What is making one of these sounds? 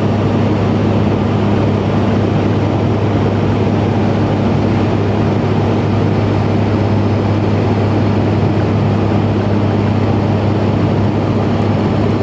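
A propeller engine drones loudly and steadily.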